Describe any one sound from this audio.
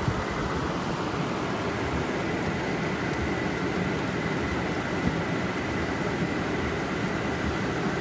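Windshield wipers swish across the glass.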